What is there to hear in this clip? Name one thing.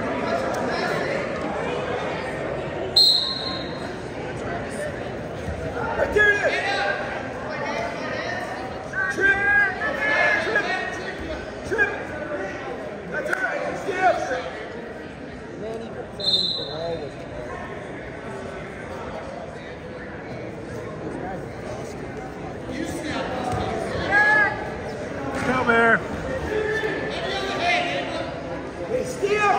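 Spectators shout encouragement in an echoing hall.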